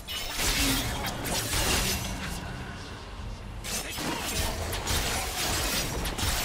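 Magic blasts and sword strikes burst and crackle in a video game battle.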